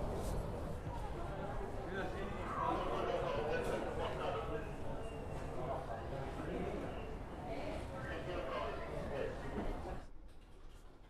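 Men and women murmur and talk quietly nearby.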